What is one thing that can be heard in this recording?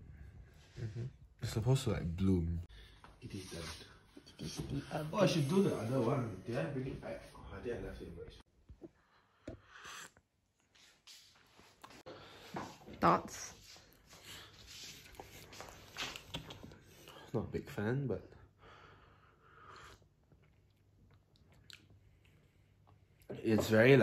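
A young man talks calmly and close to the microphone.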